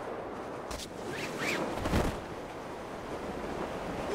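A parachute snaps open.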